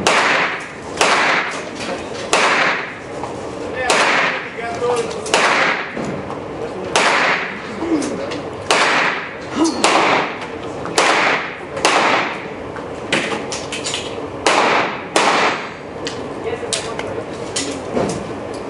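Gunshots ring out one after another, echoing loudly in a large hall.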